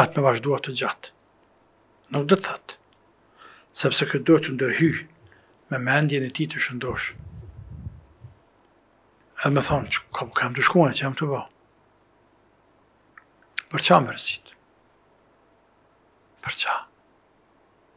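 A middle-aged man speaks emphatically into a close microphone, in bursts with pauses.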